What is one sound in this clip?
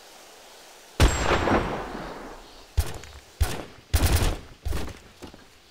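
A heavy rifle fires loudly, with a booming echo.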